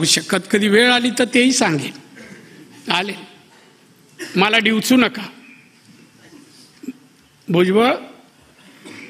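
A middle-aged man speaks slowly into a microphone, with long pauses.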